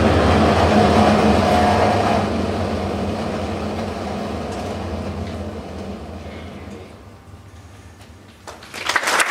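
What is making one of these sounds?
A school band plays a final chord that fades away.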